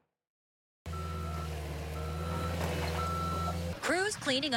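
A backup alarm beeps in slow, repeated tones.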